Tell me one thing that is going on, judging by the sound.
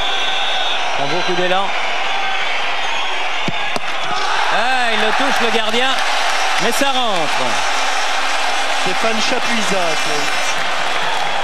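Fans in a stadium crowd whistle shrilly.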